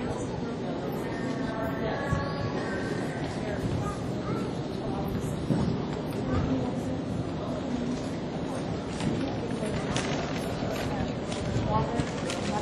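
A horse's hooves thud softly on sand as it canters.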